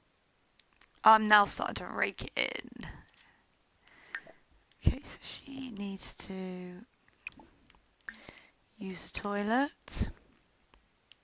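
A young woman talks through a microphone.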